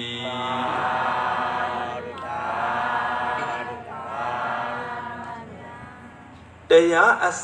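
An elderly man chants slowly into a microphone, heard through a loudspeaker.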